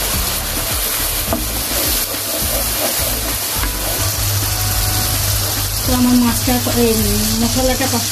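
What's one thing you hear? Sauce sizzles and bubbles steadily in a hot pan.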